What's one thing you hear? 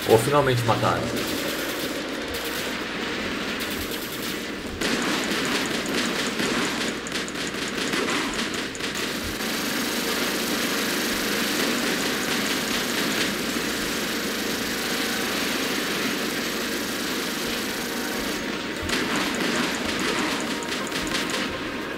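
A heavy machine whirs and clanks steadily as it walks.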